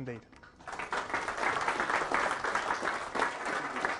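A man speaks to an audience in a room.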